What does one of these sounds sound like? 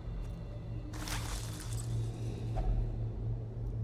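A treasure chest creaks open with a bright shimmer.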